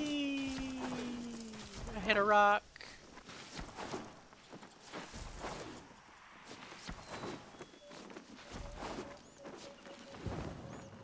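Heavy footsteps thud as a large creature runs over open ground.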